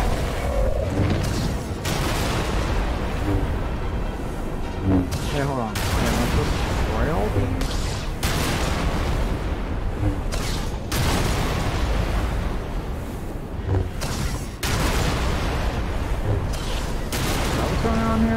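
Blasts and explosions boom.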